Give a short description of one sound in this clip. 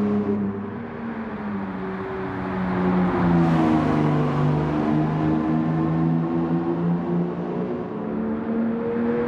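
A sports car engine roars steadily, shifting gears as it speeds along.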